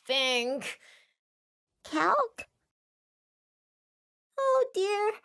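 A young boy speaks with animation, in short bursts.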